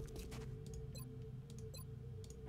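A game interface chimes softly.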